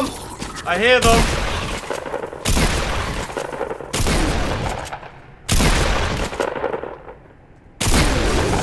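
A shotgun fires loud blasts at a steady pace, each followed by a short echoing tail.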